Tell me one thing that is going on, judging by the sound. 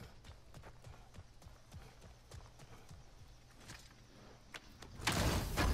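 Heavy footsteps crunch on gravel.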